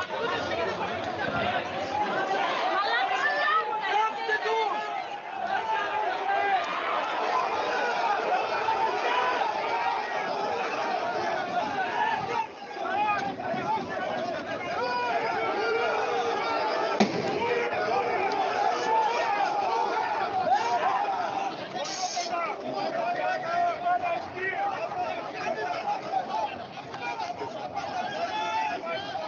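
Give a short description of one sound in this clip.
A large crowd shouts and chants outdoors at night.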